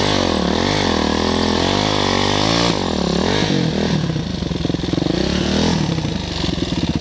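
A dirt bike engine revs hard up and down, close by.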